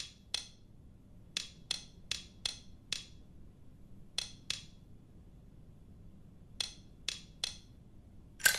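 Metal lock dials click as they turn.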